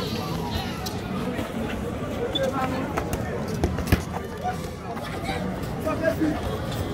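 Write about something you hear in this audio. Young men chatter and call out outdoors.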